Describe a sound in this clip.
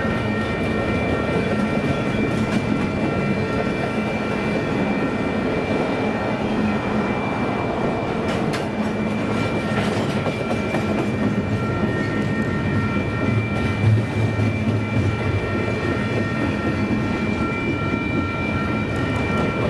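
Train wheels squeal with a thin, steady whine.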